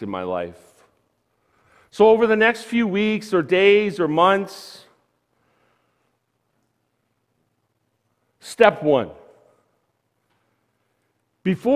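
A man speaks with animation through a microphone in a large room, pausing now and then.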